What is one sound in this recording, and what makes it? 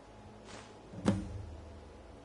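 A small wooden box lid snaps shut with a dull thud.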